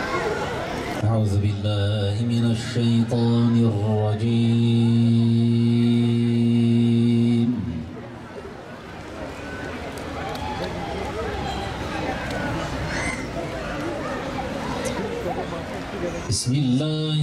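A man chants a long, drawn-out melody through a microphone.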